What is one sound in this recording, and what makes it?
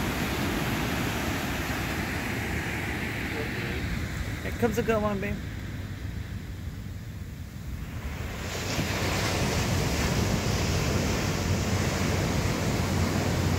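Waves crash and wash onto a beach.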